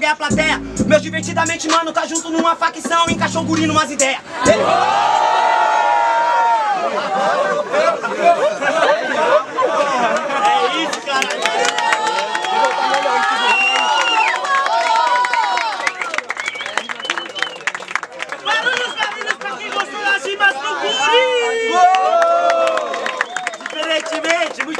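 A young man raps loudly and with animation, close by.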